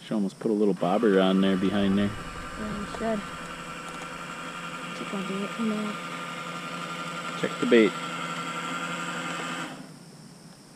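A toy boat's small electric motor whines steadily across water.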